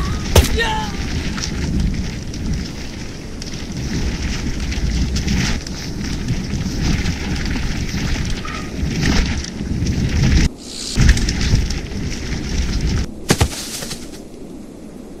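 Bicycle tyres rumble over a rough dirt trail.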